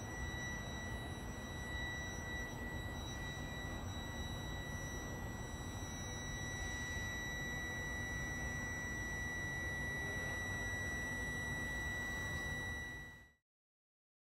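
A passenger train rolls slowly past with a steady electric whine.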